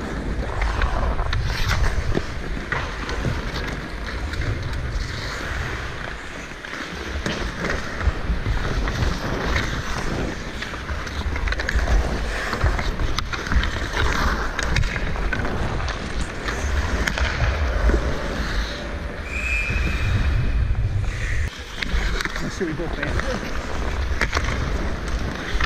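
A hockey stick taps and clacks against the puck.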